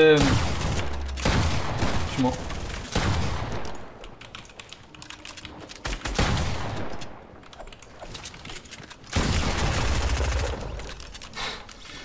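Gunshots and explosions burst loudly in a video game.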